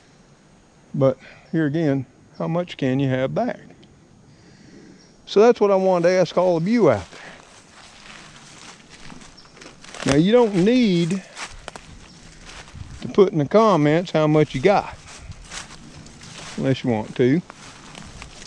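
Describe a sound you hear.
An older man talks calmly close by, in short bursts with pauses.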